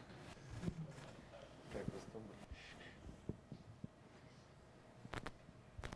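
A boy laughs softly.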